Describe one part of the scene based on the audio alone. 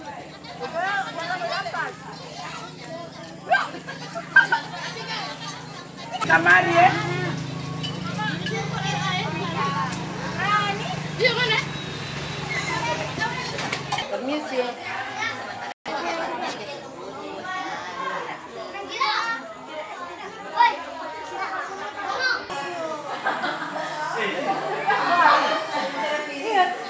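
Women and children chatter in a lively crowd nearby.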